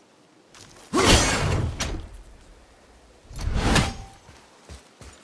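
An arrow whooshes loudly from a bow.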